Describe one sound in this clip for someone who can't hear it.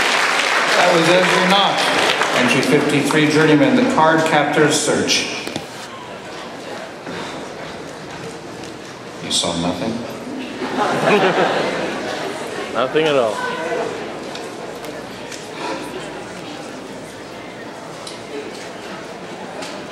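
A man speaks theatrically through a microphone and loudspeakers in a hall.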